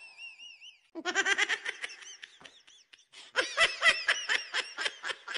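A young girl laughs with open mouth close by.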